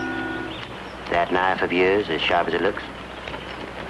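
A man speaks in a low, urgent voice close by.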